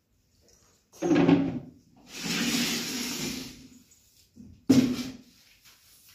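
A plastic bucket knocks against a hard floor.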